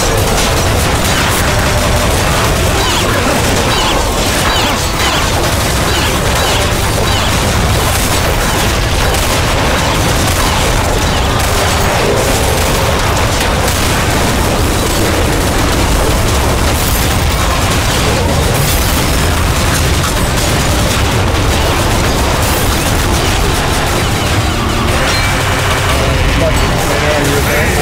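Rapid gunfire crackles.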